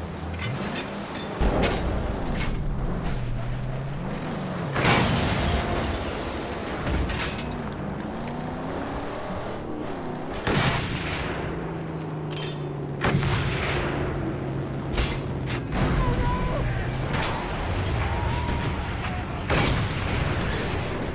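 A car engine roars and revs throughout.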